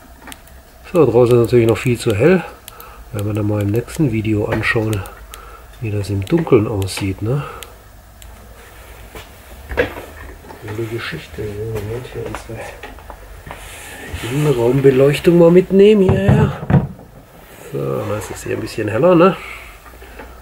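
A man speaks calmly close by.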